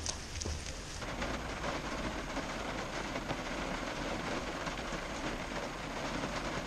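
Rain patters steadily on a vehicle's roof and windshield.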